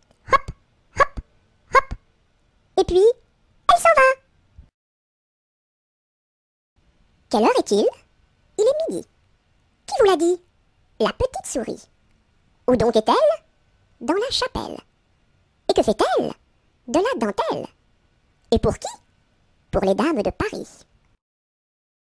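A young woman's cartoonish voice speaks playfully in short, separate phrases, close to the microphone.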